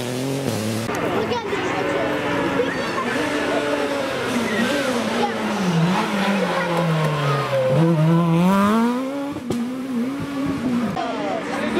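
A second rally car engine roars and revs as the car races past.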